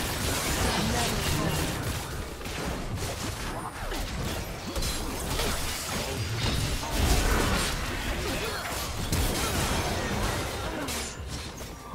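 Spell effects crackle, whoosh and burst in a video game battle.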